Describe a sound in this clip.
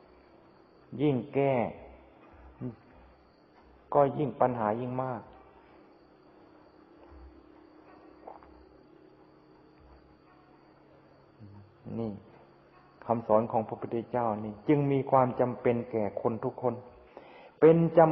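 An elderly man speaks calmly and slowly, with pauses.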